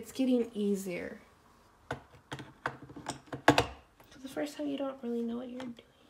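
A portafilter clicks and scrapes as it is twisted into an espresso machine.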